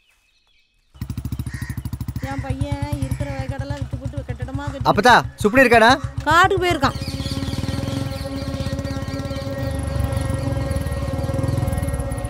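A motorcycle engine starts and runs.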